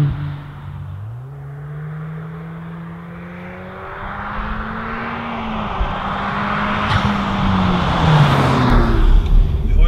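A car engine grows louder as the car approaches along a road and rushes past.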